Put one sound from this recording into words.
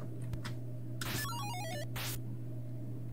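A video game gun fires with a falling electronic zap.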